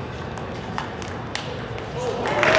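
A table tennis ball clicks sharply off paddles and the table.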